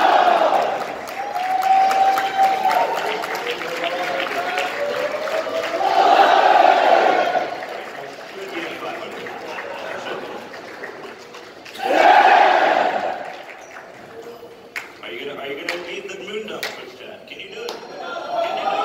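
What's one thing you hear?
An audience cheers loudly.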